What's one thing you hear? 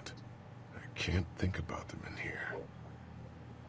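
A man speaks quietly and haltingly.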